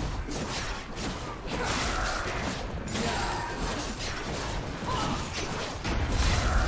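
Magic blasts crackle and whoosh during a fast fight.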